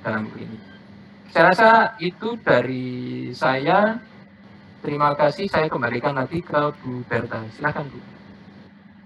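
A middle-aged man speaks calmly through a headset microphone on an online call.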